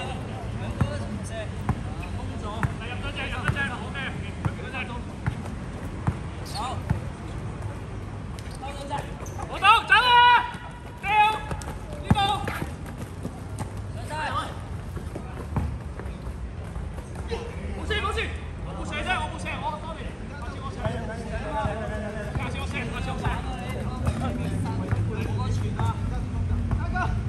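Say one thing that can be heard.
Young men call out to each other during play.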